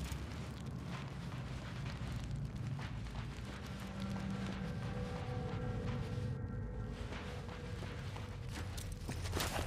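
Footsteps crunch on dirt and gravel.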